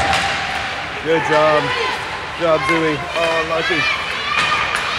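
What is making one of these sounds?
Spectators chatter nearby in an echoing rink.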